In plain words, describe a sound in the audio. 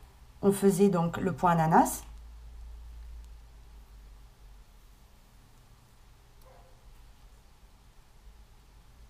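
A crochet hook pulls yarn through stitches softly.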